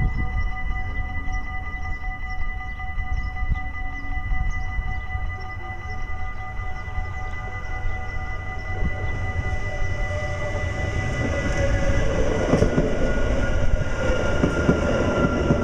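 An electric train approaches and rumbles loudly past close by.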